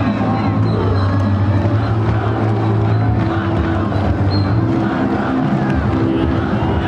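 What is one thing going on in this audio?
A crowd cheers and chatters across an open stadium.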